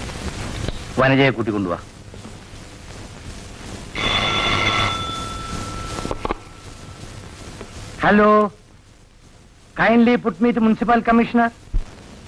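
A man speaks in short bursts nearby.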